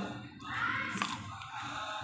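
A woman bites into crunchy food.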